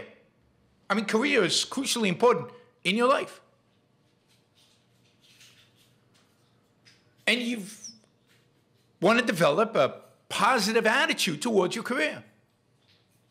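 A middle-aged man speaks with animation, close to a microphone, in pauses.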